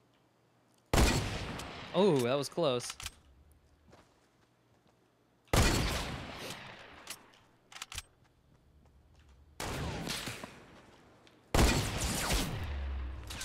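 Single rifle shots bang loudly and echo away.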